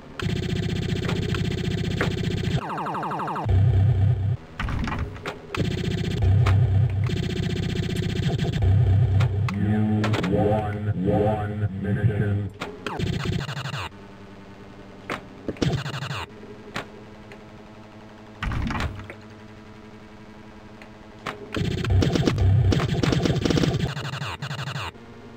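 A pinball game plays electronic music.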